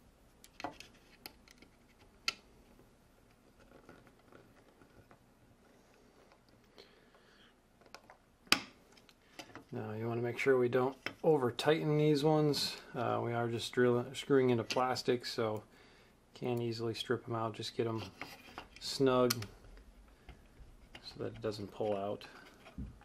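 Small plastic parts click and snap as hands pry them apart.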